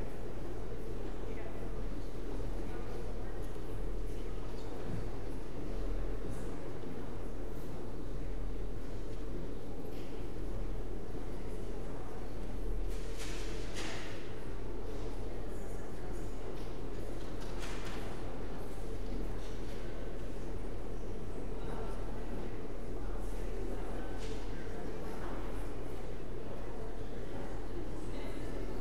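A small crowd of adults murmurs and chats in a large echoing hall.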